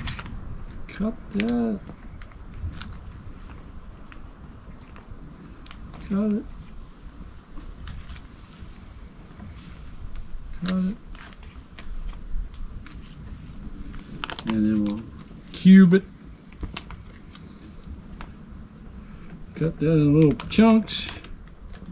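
A man speaks briefly and calmly close by, in short bursts.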